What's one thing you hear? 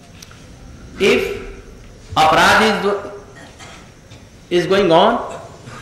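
An elderly man speaks slowly and calmly into a nearby microphone, in short phrases with pauses.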